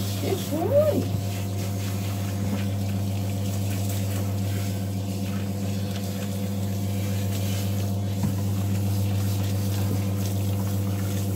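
Water sprays from a hose onto a dog's wet fur.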